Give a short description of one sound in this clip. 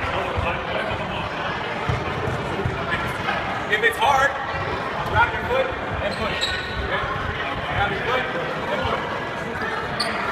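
Sneakers squeak and thump on a wooden floor.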